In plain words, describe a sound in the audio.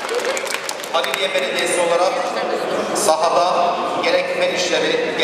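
A man speaks loudly into a microphone over loudspeakers.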